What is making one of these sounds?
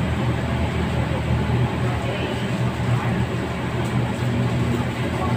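Gas burners roar steadily.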